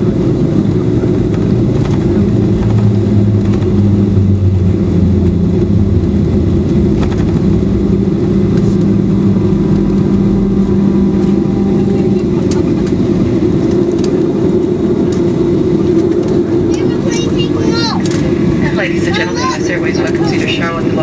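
Wheels rumble over a runway.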